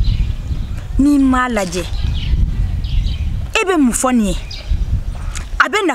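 A woman speaks close by with animated, rising and falling exclamations.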